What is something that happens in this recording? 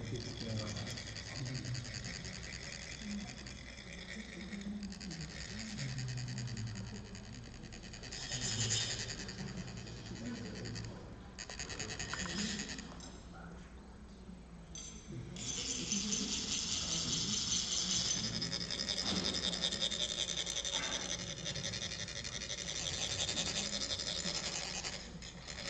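Metal funnels rasp steadily as sand is scraped out of them.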